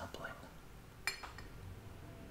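Glass clinks against glass.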